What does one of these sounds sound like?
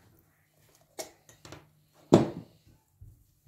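A sandwich maker's lid clatters as it is opened.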